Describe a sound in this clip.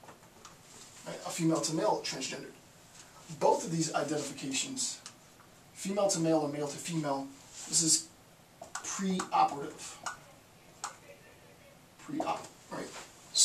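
A man speaks calmly and clearly, as if lecturing, close by.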